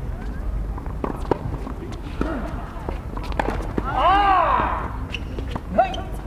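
Tennis balls are struck with rackets in a rally.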